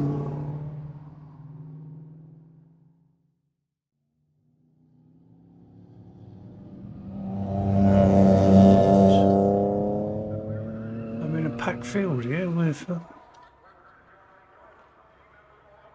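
Racing car engines roar, rising and falling in pitch.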